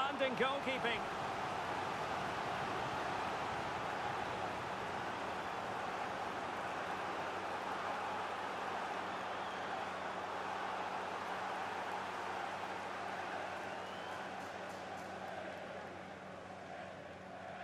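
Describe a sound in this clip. A large stadium crowd roars and cheers steadily, then slowly fades.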